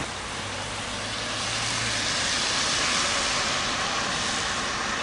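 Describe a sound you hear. Tyres hiss on a wet road as a car drives past.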